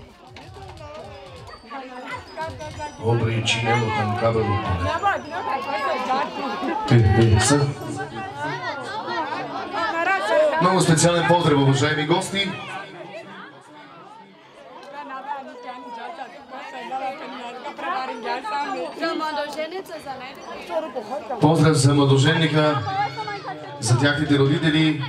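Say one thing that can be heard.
Women chatter close by outdoors.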